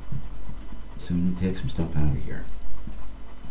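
An elderly man speaks briefly and calmly into a microphone.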